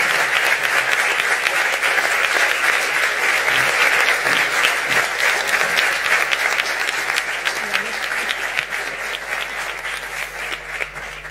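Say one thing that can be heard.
A large crowd of men and women chatters loudly in an echoing hall, slowly growing quieter.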